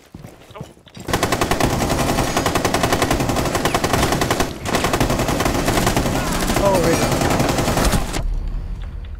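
Automatic gunfire rattles rapidly.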